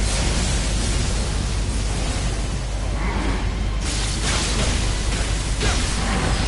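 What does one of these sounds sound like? Swords clash and slash in a fierce fight.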